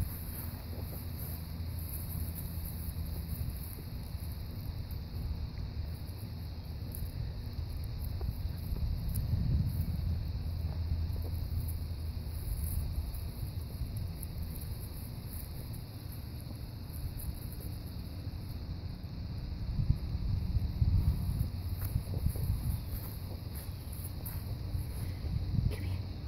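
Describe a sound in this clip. Wind rumbles across an outdoor microphone.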